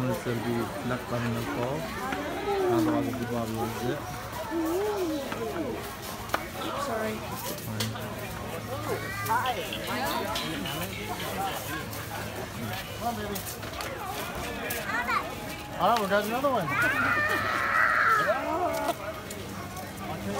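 Men and women chatter and call out nearby outdoors.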